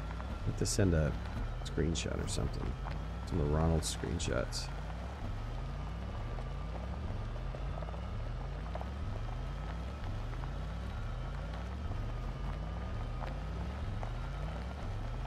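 A small vehicle's engine hums steadily.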